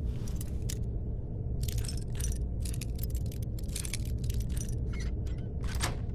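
A lockpick scrapes and clicks inside a metal lock.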